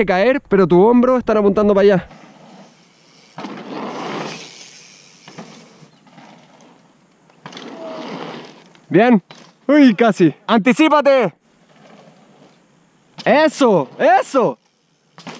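A bicycle's tyres roll and crunch over dirt.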